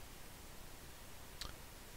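A pen taps and scratches lightly on paper.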